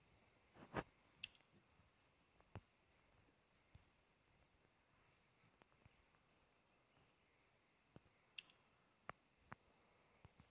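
Short, soft menu clicks sound now and then.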